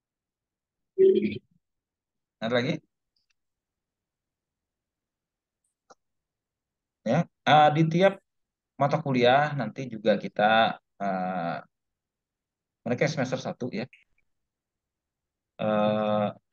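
A man speaks through an online call, in short bursts with pauses.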